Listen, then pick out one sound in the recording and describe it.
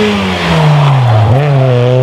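Tyres squeal on asphalt as a car slides through a bend.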